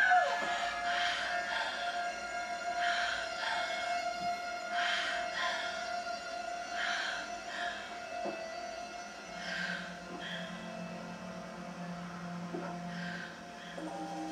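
A young woman speaks calmly through a television speaker.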